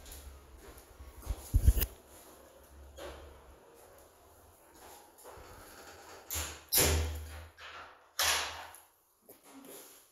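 A phone rubs and bumps against clothing.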